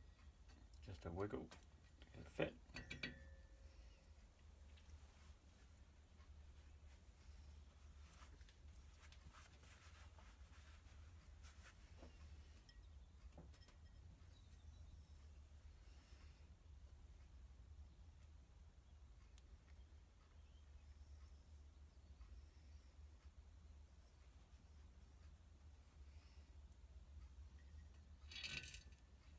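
Metal engine parts clink and click as hands fit them together.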